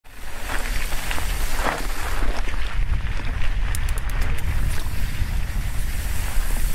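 Bicycle tyres crunch and rattle over a rocky dirt trail.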